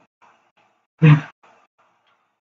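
A single heavy thud of a body blow lands.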